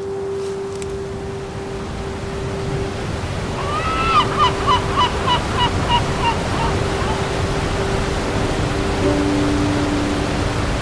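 A waterfall roars and rushes steadily.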